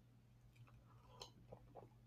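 A man sips a drink and swallows.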